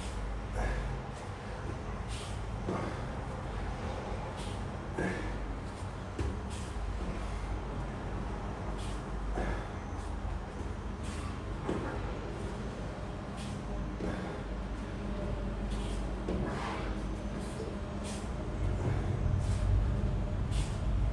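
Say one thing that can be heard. A man breathes out hard with each sit-up.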